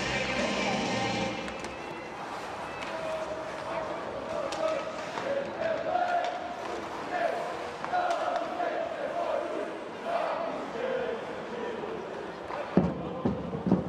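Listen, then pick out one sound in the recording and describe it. A crowd chants and sings in a large echoing arena.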